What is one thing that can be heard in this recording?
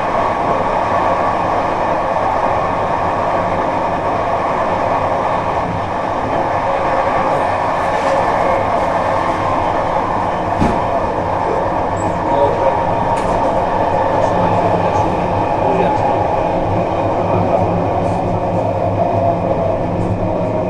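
Train wheels click now and then over rail joints.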